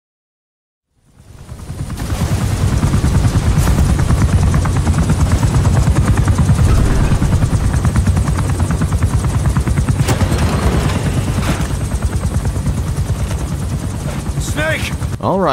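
A helicopter's rotor throbs loudly and steadily.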